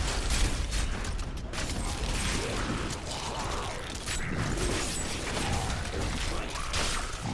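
Game monsters are struck with heavy impacts.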